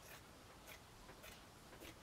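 Scissors snip through paper.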